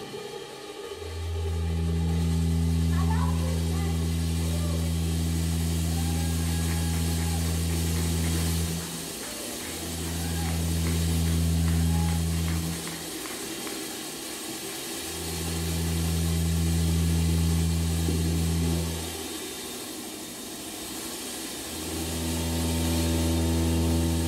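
A loud deep electronic drone pulses on and off in long blocks.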